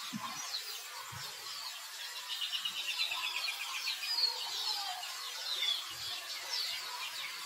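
A newborn monkey squeaks with high, thin cries.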